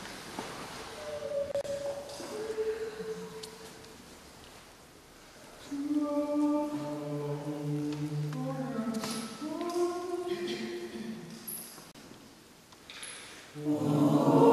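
A mixed choir of men and women sings in a large echoing hall.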